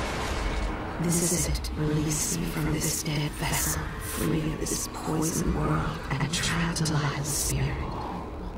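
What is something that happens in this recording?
A young woman speaks calmly and close.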